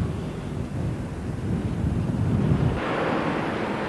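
A bus engine rumbles as it drives past.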